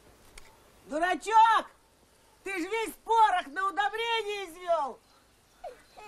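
An elderly man speaks loudly and agitatedly.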